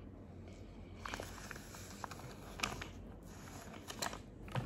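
A young girl speaks softly close by.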